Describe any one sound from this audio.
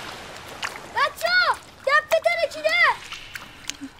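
A young boy shouts loudly in distress, close by.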